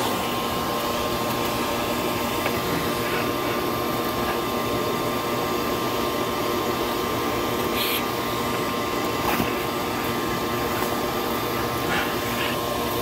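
A vacuum cleaner hums steadily and loudly.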